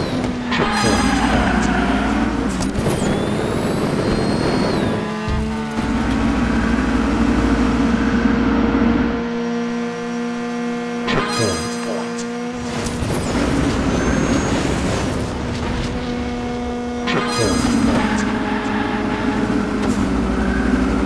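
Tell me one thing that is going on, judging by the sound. A small racing car engine whines and buzzes steadily, rising and falling in pitch.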